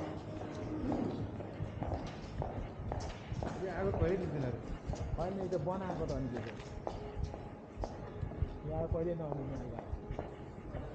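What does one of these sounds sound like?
Footsteps walk on pavement outdoors.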